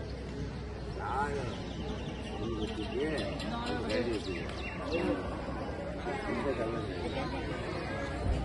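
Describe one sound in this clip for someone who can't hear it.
Several men and women talk nearby outdoors, voices mixing together.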